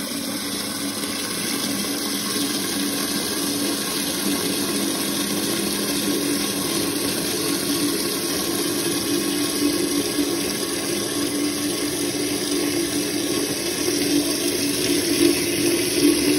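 Water gushes and splashes steadily into a toilet tank as it refills.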